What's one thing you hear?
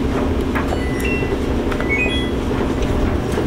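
A washing machine beeps several times.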